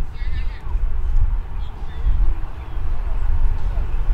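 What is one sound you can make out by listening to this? A cricket bat knocks a ball once.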